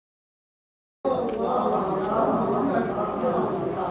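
A crowd of women sings together in unison.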